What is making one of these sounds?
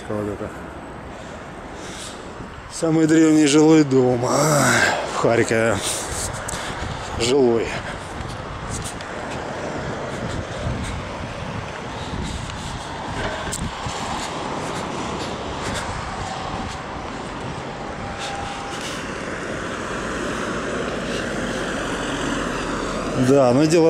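Street traffic rumbles steadily nearby.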